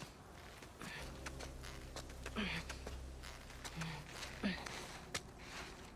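Hands and shoes scrape and knock against a wall while climbing.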